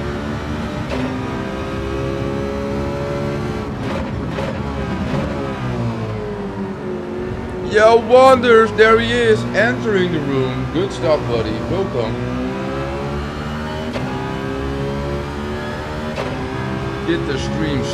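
A racing car engine revs and shifts gears steadily throughout.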